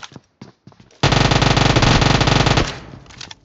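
A submachine gun fires in a rapid burst at close range.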